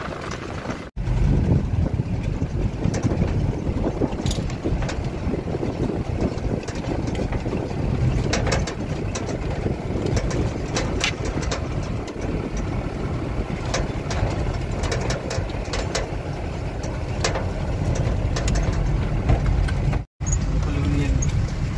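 A vehicle engine rumbles steadily as it drives along.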